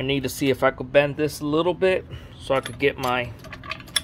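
A metal handle clinks into its socket.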